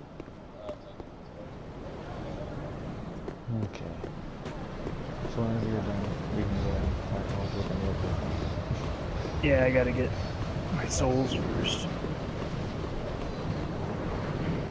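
Armoured footsteps run over stone.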